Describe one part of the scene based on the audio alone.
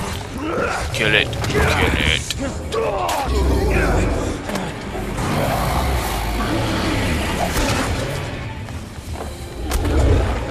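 A huge beast roars and growls loudly.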